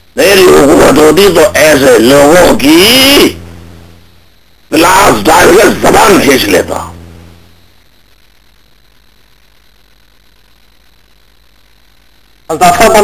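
A man speaks calmly through a microphone, heard over a broadcast line, in bursts with pauses.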